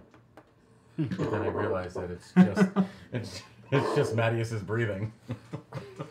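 Several men laugh loudly together.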